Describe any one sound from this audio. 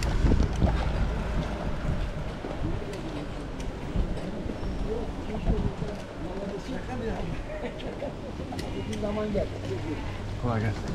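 Bicycle tyres rumble over paving stones.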